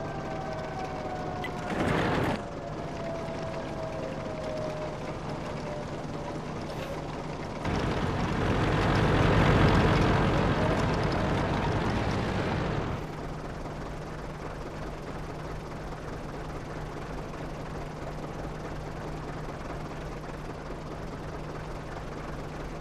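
A tank engine idles with a steady low hum.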